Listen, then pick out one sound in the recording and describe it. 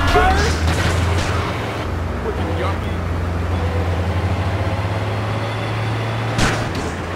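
A fire truck's engine drones as it drives along a road.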